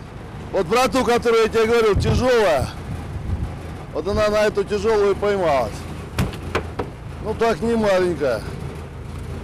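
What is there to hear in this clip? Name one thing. A man shouts excitedly nearby.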